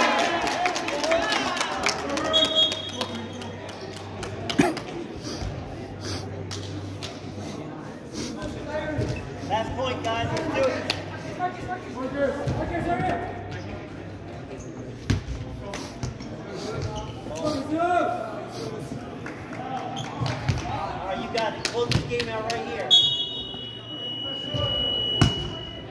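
Young people chatter and call out in a large echoing gym.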